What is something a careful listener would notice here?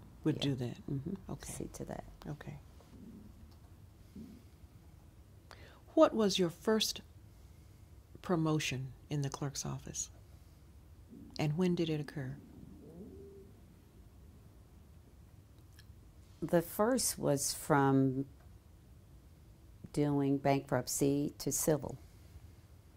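An older woman speaks calmly, close to a microphone, in short phrases with pauses.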